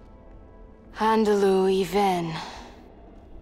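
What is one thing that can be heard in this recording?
A young woman speaks tensely, close by.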